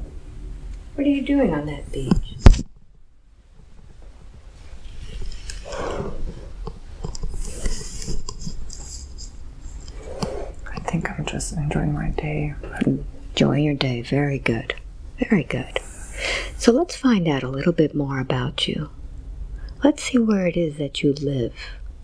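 A young man speaks softly, close to a microphone.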